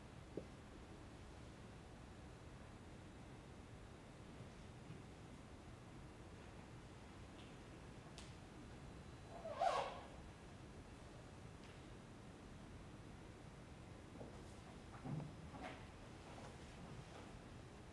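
Feet thud and slide softly on a stage floor.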